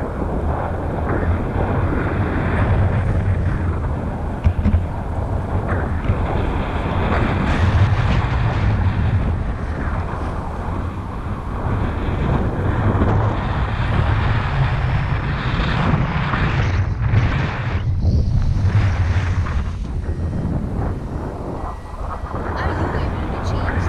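Strong wind rushes and buffets loudly past close by.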